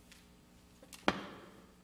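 A microphone thumps once, loudly, with a short echo.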